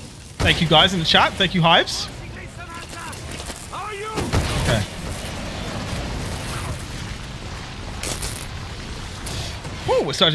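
Gunfire from a game rattles in bursts.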